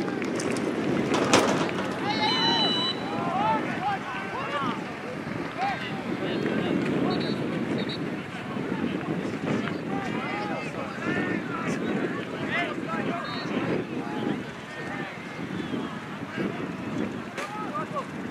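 Young men shout and call out from a distance across an open field.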